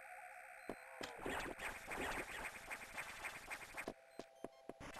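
Electronic laser blasts fire in quick repeated bursts.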